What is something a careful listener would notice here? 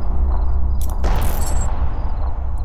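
Handcuffs click and rattle.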